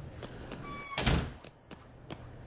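A metal door bangs shut.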